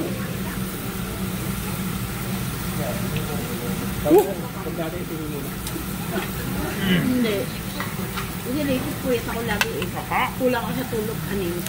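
Meat sizzles on a hot grill.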